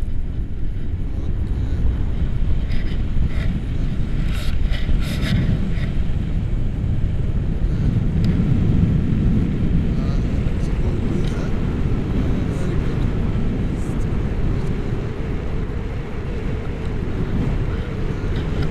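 Wind roars and buffets loudly against a microphone outdoors.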